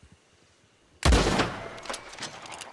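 A scoped rifle fires a single loud shot.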